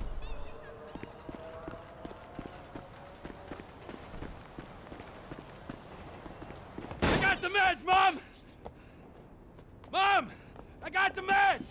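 Footsteps run quickly over dirt and wooden steps.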